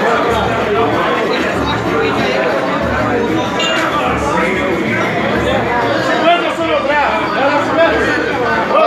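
A crowd of men and boys chatters loudly close by.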